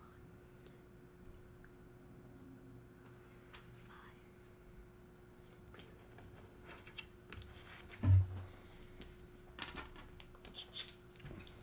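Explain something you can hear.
Small game pieces tap and click on a table.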